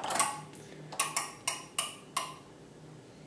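Electrical relays click one after another.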